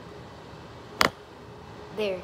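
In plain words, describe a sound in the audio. A wooden pestle knocks against a metal bowl.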